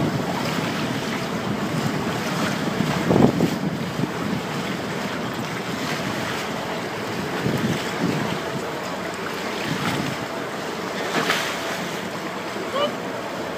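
Waves slosh against the hull of a moving boat.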